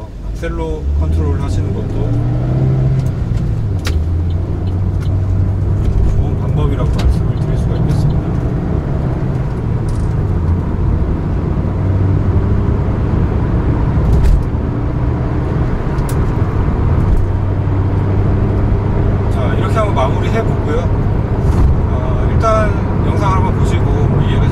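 Tyres rumble on the road inside a moving car.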